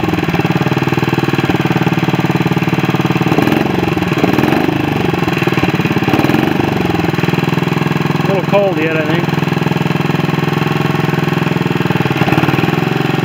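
A small engine idles with a steady, rapid chugging.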